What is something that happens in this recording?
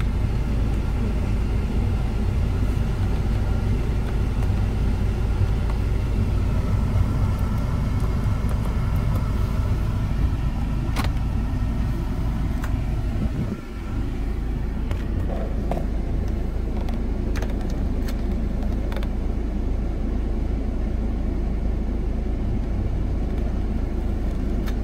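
An SUV engine idles, heard from inside the cabin.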